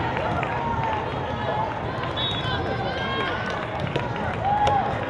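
A volleyball is struck with a hand with a sharp slap.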